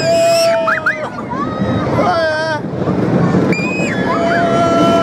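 Young women scream with delight.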